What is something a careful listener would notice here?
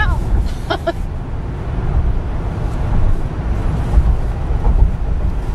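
A car's road noise rumbles, heard from inside as it drives at highway speed.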